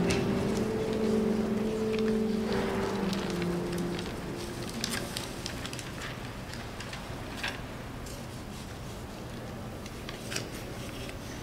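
Pages of music rustle and turn.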